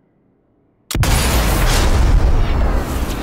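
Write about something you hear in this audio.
A rifle fires with a loud crack.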